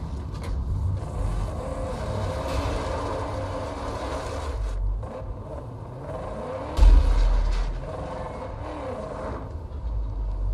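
A car engine revs as the car drives off.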